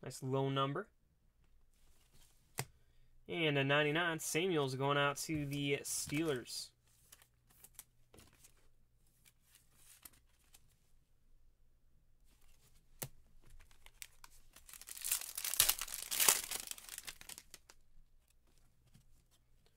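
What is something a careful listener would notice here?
Hard plastic card holders click and tap.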